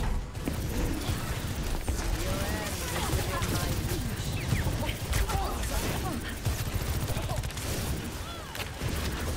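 Game sound effects whoosh and zap with sweeping tones.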